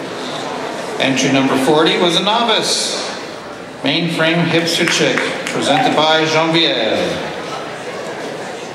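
A man speaks into a microphone over loudspeakers, with animation.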